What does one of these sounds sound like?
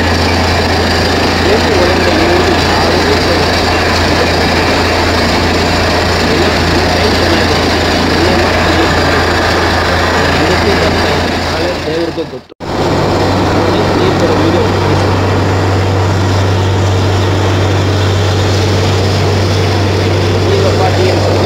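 A heavy diesel engine runs loudly and steadily close by.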